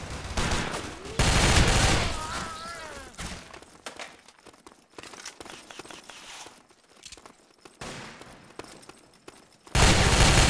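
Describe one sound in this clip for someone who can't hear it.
Loud rifle shots boom and echo.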